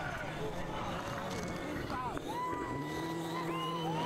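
Tyres of a rally car slide and spray dirt.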